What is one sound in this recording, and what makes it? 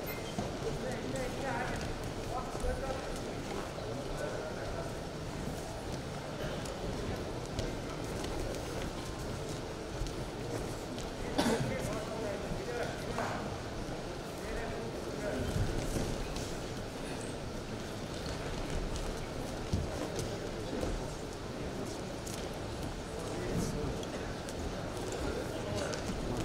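Wrestlers' feet thump and shuffle on a mat.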